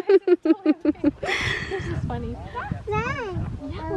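A young woman talks and laughs cheerfully close by.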